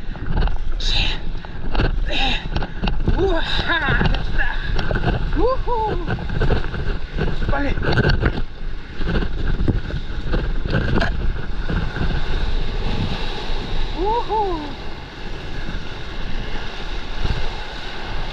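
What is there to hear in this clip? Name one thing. Water splashes and rushes against a paddleboard.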